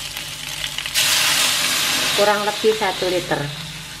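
Water pours into a hot pan with a hiss.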